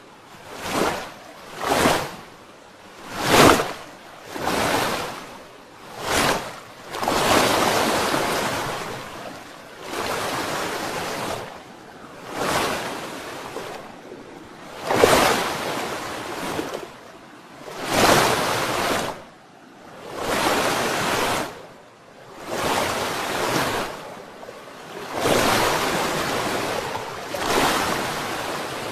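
Water rushes and splashes in loud surges.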